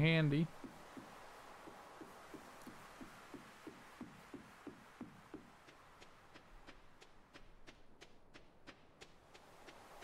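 Footsteps tap at a steady, quick pace.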